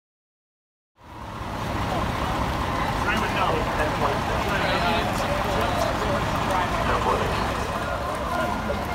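Men talk with one another nearby outdoors.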